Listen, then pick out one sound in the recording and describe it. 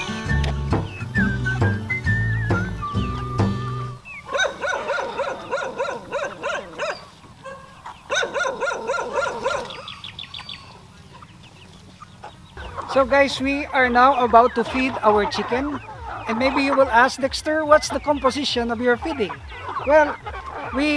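Chickens cluck and chirp in a flock.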